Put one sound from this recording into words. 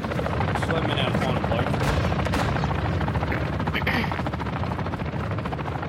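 A helicopter's rotor thumps loudly nearby.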